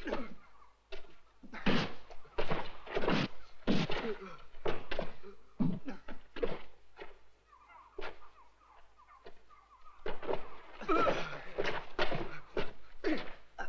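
Men grunt and cry out as they fight.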